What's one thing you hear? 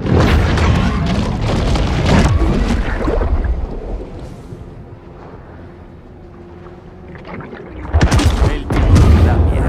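Heavy crunching bites and thrashing churn the water.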